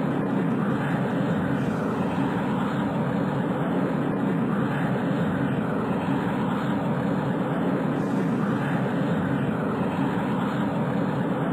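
A rocket engine roars with steady thrust.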